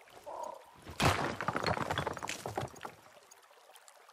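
Water splashes and trickles close by.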